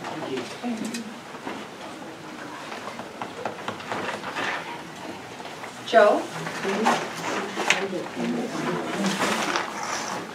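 Several adults talk at once in a room with some echo.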